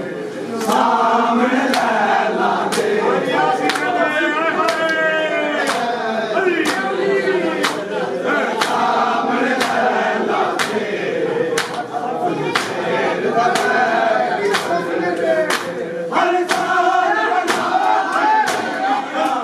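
A crowd of men chants loudly together in an echoing room.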